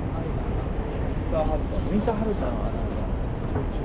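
Two men talk briefly nearby.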